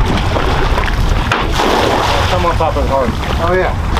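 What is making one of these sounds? A cast net swishes through the air and splashes into the water.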